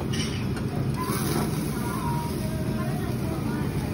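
Tongs clink against a metal grill.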